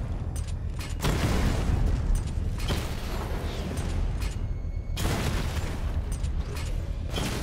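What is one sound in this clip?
Guns fire in rapid bursts with sharp blasts.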